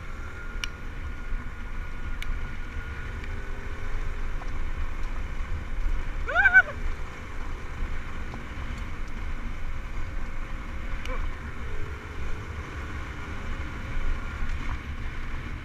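A dirt bike engine drones steadily at speed.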